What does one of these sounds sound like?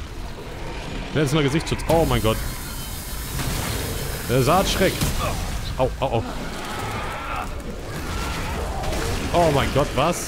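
A creature shrieks and snarls.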